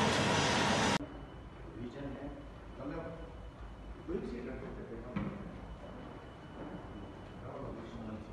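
Footsteps tap on a hard floor in an echoing hallway.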